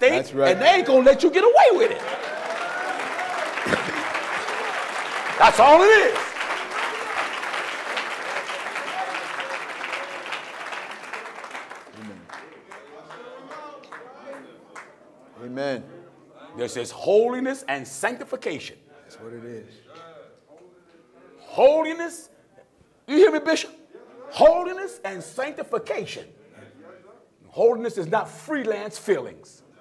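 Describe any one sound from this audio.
A man preaches loudly and with animation through a microphone.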